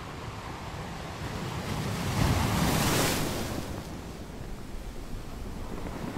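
Ocean waves roll in and crash against rocks.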